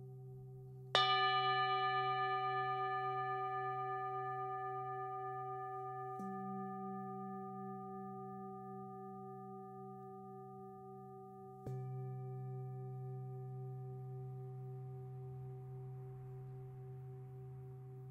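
A singing bowl is struck with a mallet and rings out brightly.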